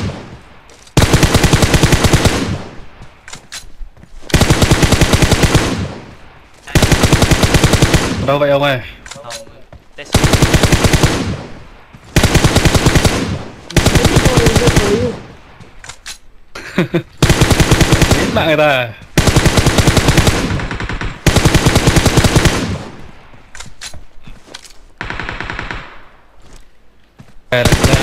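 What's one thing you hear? Automatic gunfire rattles in loud, repeated bursts.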